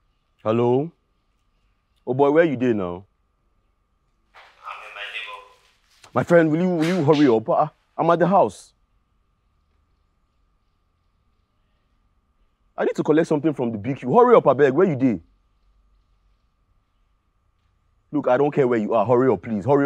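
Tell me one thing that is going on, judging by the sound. A young man talks on a phone close by, calmly with pauses.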